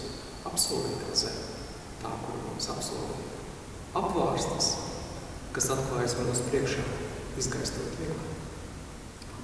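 A man speaks calmly into a microphone in a reverberant hall.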